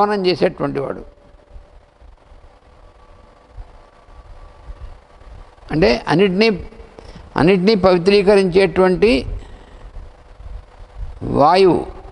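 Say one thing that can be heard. An elderly man chants slowly into a microphone, in bursts with pauses between them.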